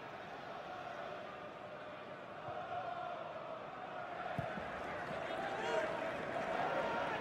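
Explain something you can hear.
A large stadium crowd roars and chants in the open air.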